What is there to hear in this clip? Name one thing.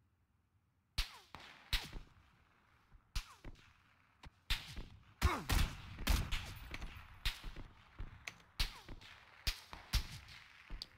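Rifle shots crack sharply, one after another.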